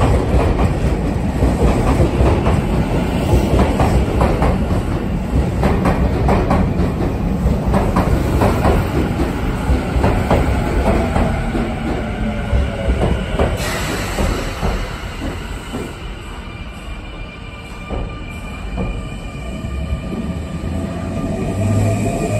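A train rumbles and clatters past close by, slowly fading as it leaves.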